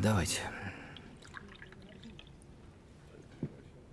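Liquid pours and trickles into a small glass.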